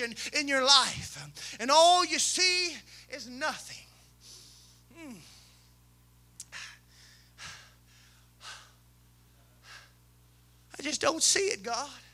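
A man preaches with fervour through a microphone in a large echoing hall, his voice rising and falling in bursts.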